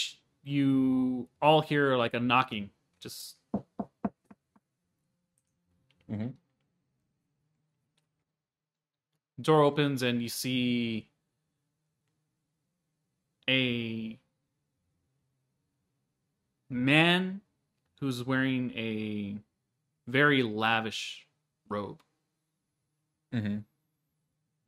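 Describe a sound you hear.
A man speaks calmly in short bursts through a microphone on an online call.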